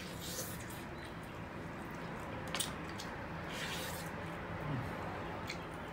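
Meat tears apart in a man's hands.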